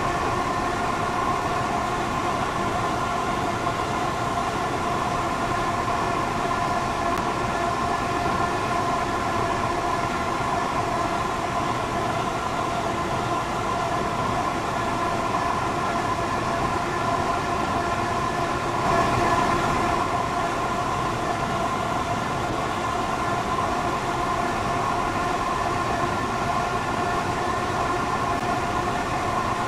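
A train's wheels rumble over the track.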